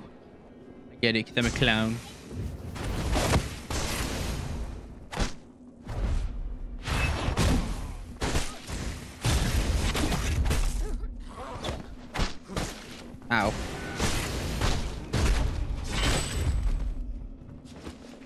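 Sword blows clash and thud in quick bursts.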